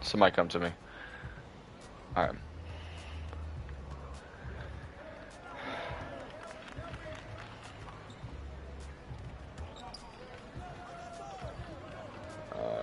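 A basketball bounces repeatedly on a hardwood court.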